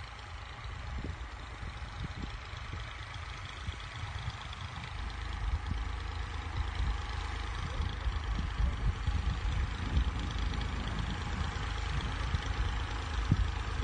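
A diesel tractor's engine rumbles under load as it pulls an implement through tilled soil.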